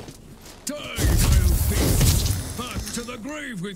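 A loud magical blast bursts with a rushing roar.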